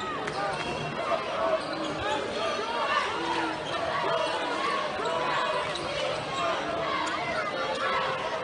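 A crowd murmurs and calls out in a large echoing arena.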